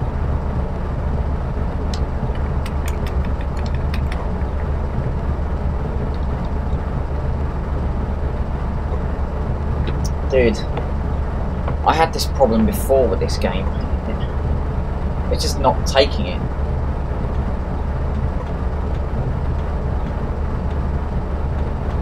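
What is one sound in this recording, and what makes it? Machinery hums steadily and low.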